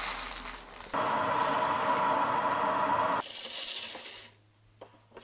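Coffee beans rattle as they pour into a roaster.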